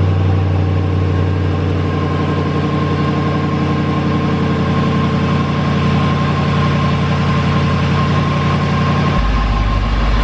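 A car engine idles with a deep, throaty exhaust rumble close by.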